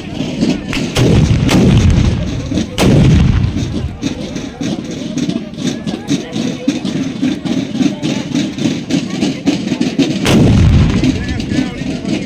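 Muskets fire loud booming shots outdoors.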